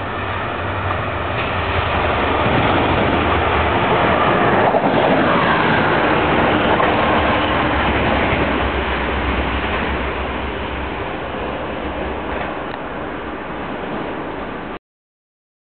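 A diesel locomotive rumbles and roars past on the rails, then slowly fades away.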